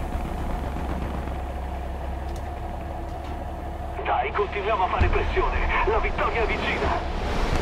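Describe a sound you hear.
A tracked armoured vehicle's engine rumbles low and steady.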